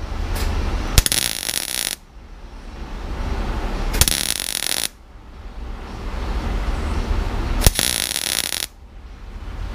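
A welder crackles and hisses in short bursts.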